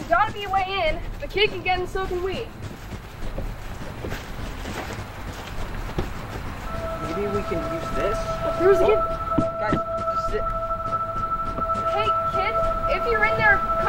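Teenagers talk close by.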